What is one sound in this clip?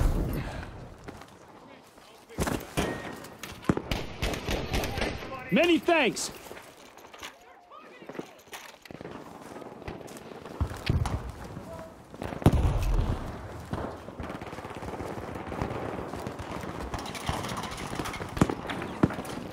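Footsteps crunch quickly over gravel and stone.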